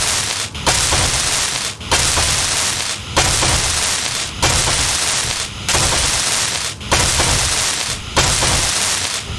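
A welding torch hisses and crackles in repeated bursts of about a second each.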